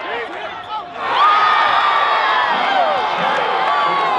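A crowd cheers and roars loudly.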